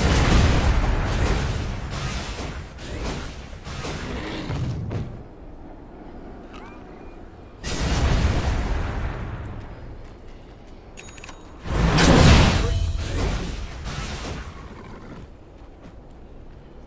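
Spell blasts and fighting effects crash and whoosh in bursts.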